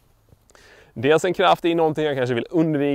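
A man speaks calmly and clearly into a microphone, close up.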